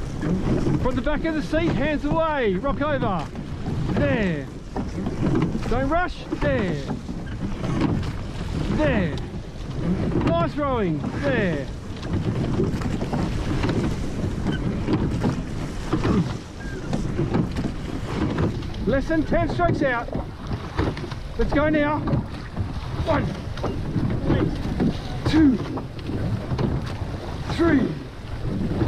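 Oars splash rhythmically through the water.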